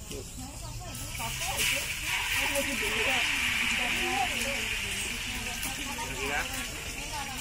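Oil sizzles loudly in a hot pan.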